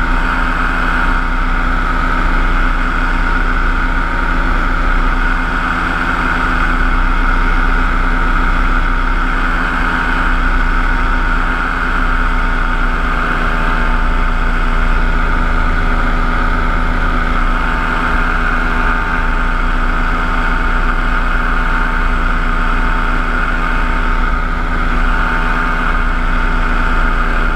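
Wind rushes past in flight.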